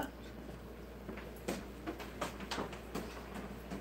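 Footsteps walk away across a hard floor.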